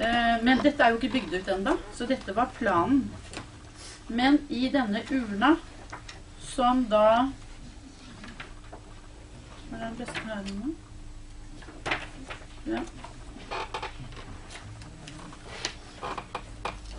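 Pages of a magazine rustle as they are turned.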